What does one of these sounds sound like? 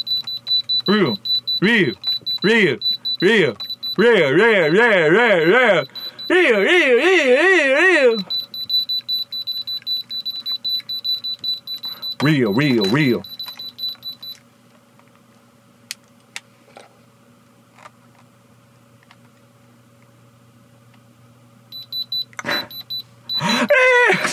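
Electronic testers beep with a loud, warbling, wavering tone.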